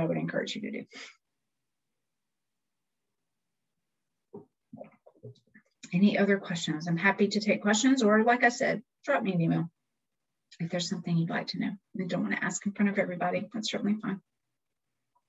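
A woman talks calmly over an online call.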